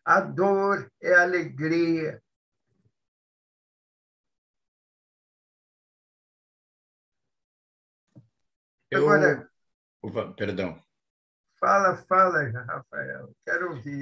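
An elderly man speaks with animation over an online call.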